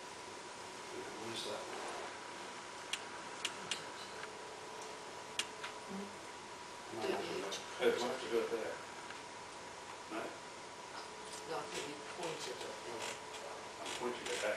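A man talks quietly at a distance, away from the microphone.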